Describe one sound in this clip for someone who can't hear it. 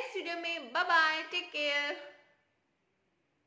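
A young woman speaks brightly and cheerfully close to a microphone.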